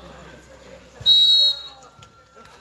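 A referee blows a short whistle.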